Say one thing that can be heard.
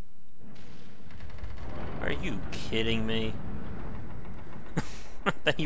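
A heavy wooden door rumbles open.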